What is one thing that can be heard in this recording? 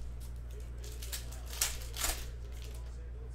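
Foil wrapping crinkles as a pack is torn open.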